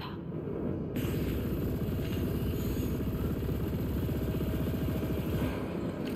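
A laser beam buzzes as it fires.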